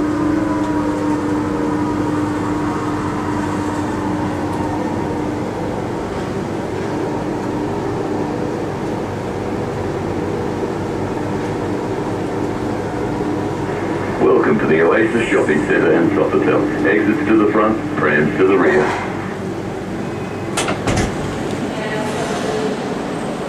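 A monorail car hums along the track with a whine that falls in pitch as it slows.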